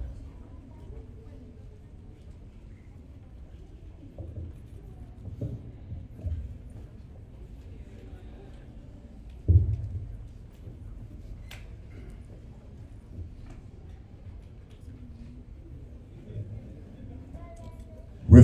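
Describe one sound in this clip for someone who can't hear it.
A man speaks into a microphone over a loudspeaker in a large hall.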